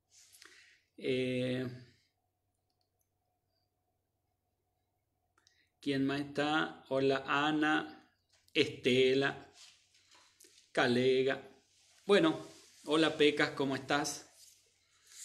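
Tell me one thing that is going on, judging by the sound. A middle-aged man speaks calmly and close by, in short bursts with pauses.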